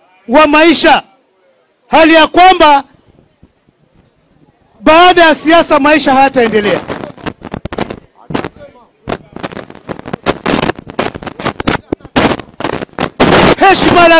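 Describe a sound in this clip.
A man speaks loudly and forcefully into a microphone.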